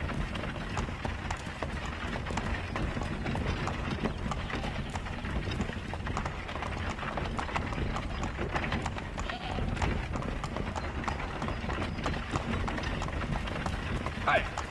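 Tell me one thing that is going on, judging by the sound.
A wooden wagon rumbles and creaks as it rolls along.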